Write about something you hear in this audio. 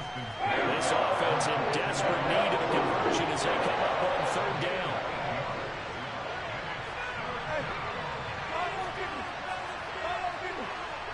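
A stadium crowd roars loudly, then settles into a steady murmur.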